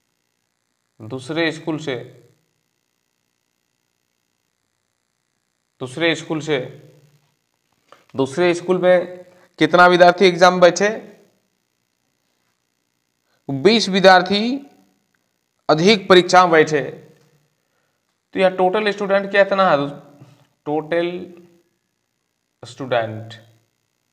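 A man explains calmly in short phrases, close by.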